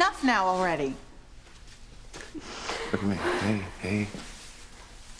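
A young woman sobs and cries out.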